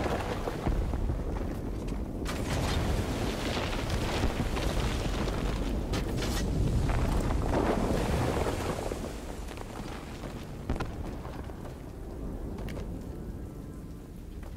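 Flames crackle and sparks fizz.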